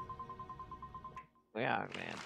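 Short electronic hit sounds tick in a quick, even rhythm.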